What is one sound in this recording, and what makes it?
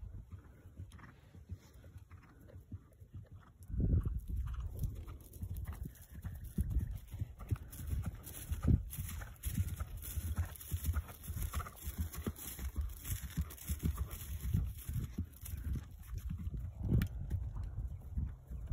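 Hooves thud on grass as a horse canters close by.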